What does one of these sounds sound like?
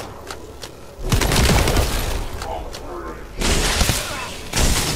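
Energy blasts whoosh and boom.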